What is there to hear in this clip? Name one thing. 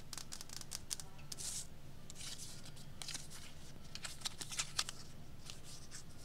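A paper tag rustles between fingers.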